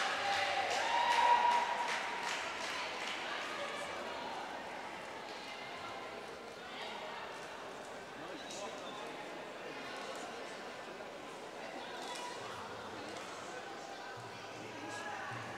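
A marimba rings out with quick mallet notes in a large echoing hall.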